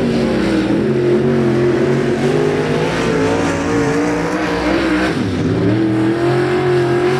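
Race car engines roar loudly as cars speed past.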